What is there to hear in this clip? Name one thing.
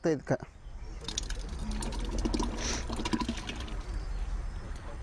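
Thick liquid glugs and splashes as it is poured from one glass jar into another.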